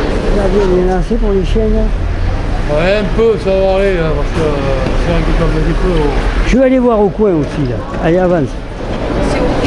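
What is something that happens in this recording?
A middle-aged man speaks calmly up close.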